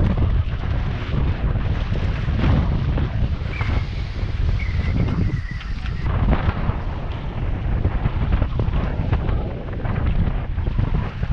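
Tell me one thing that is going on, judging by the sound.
Waves splash and rush against a boat's hull.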